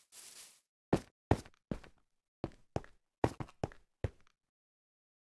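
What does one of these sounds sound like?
Stone blocks are struck and broken with sharp knocks.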